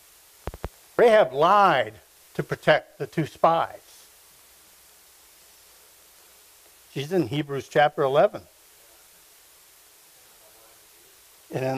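A middle-aged man reads aloud through a microphone, in a room with some echo, with long pauses.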